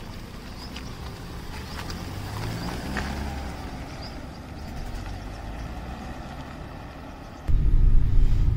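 A car engine starts up and the car drives away.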